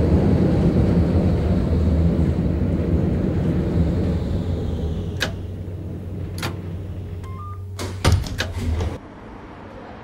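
A tram rumbles along rails and slows down.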